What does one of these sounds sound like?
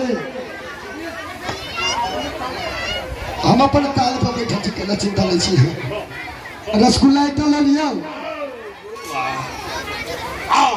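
A man sings loudly through a loudspeaker outdoors.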